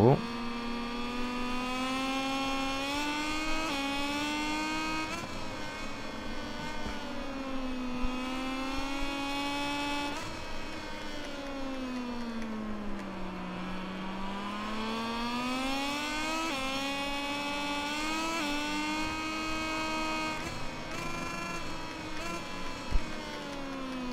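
A motorcycle engine whines loudly, revving up and down as gears shift.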